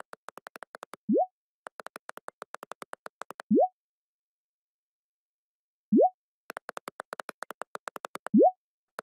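A short rising electronic chime sounds several times.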